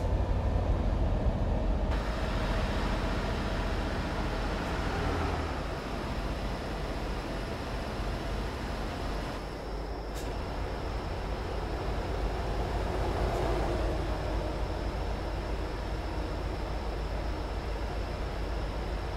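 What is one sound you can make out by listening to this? Tyres roll on a road with a steady rush.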